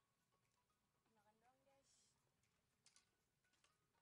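A young woman speaks briefly and softly nearby.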